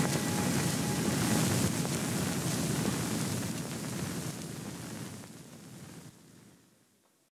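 A river rushes and splashes over shallow rapids, fading toward the end.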